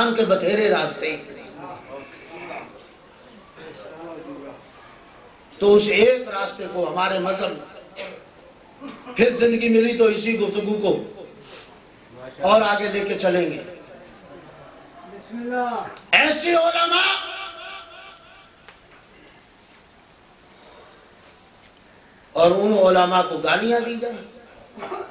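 A man preaches with passion into a microphone, his voice loud and echoing, in bursts with pauses between.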